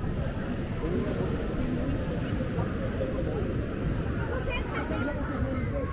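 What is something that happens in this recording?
A crowd of adults and children chatter and call out all around, outdoors.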